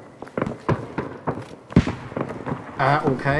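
Gunshots crack in quick bursts nearby.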